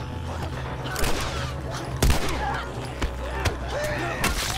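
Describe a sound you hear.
Gunshots bang sharply.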